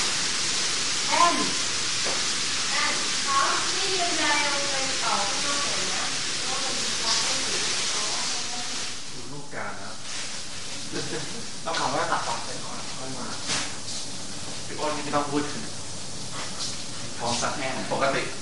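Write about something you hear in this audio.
Young men talk casually at a distance, heard through a television broadcast.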